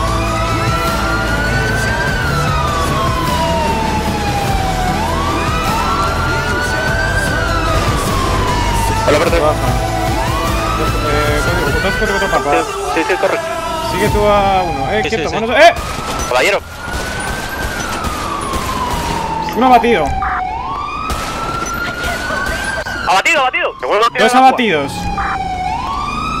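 A police siren wails, rising and falling steadily.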